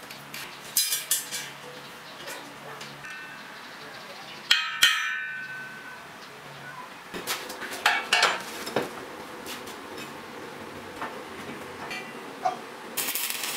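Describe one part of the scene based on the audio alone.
Metal parts clank and knock against each other.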